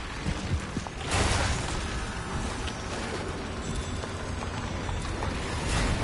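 A creature shrieks and skitters close by.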